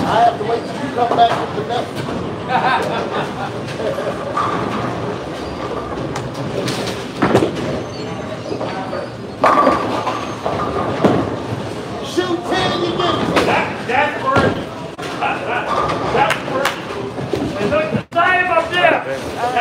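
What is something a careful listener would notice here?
Men talk and chatter nearby in a large echoing hall.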